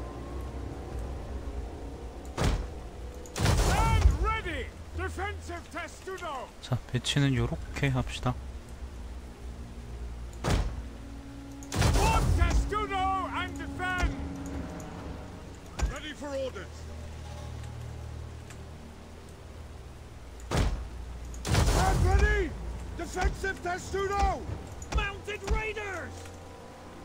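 Soldiers march with a low, steady rumble.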